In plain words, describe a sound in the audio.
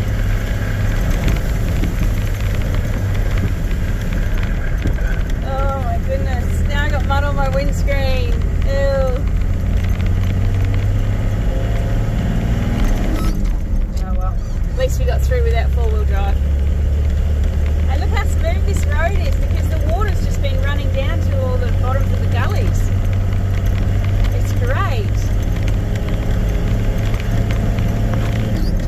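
Tyres rumble over a rough dirt track.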